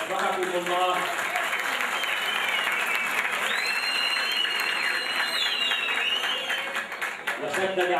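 A crowd claps and applauds in a large hall.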